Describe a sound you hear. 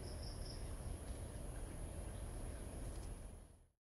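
A bird's wings flutter briefly as it takes off.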